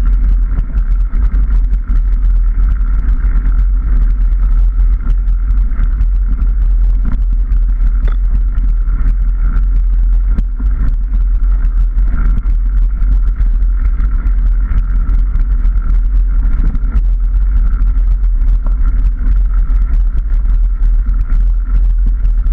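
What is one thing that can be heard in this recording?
A motorcycle engine roars steadily up close.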